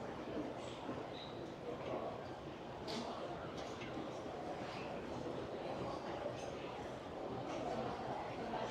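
A crowd murmurs indistinctly in the distance in a large echoing indoor space.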